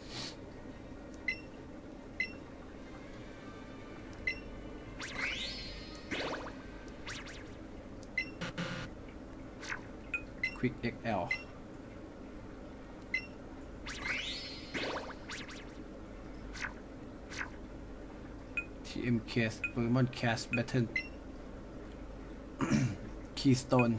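Short electronic menu beeps sound again and again.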